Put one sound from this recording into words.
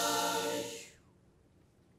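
A choir of young girls sings and then stops abruptly.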